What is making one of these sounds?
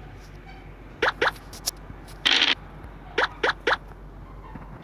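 Short bright blips sound as game pieces hop from square to square.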